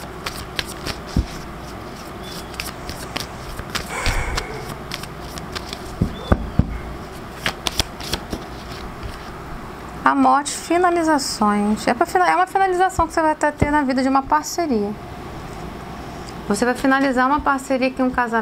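Playing cards tap and rustle as they are handled and laid down.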